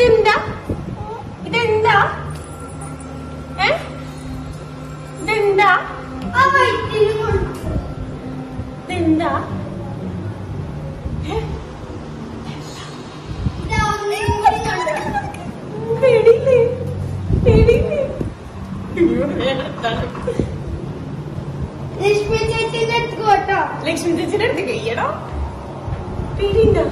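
A young woman talks and laughs playfully close by.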